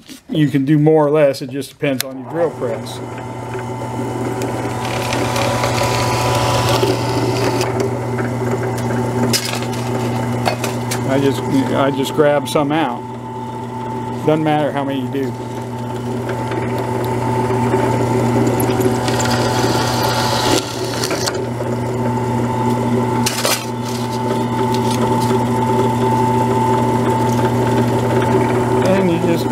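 A drill bit grinds through a thin sheet.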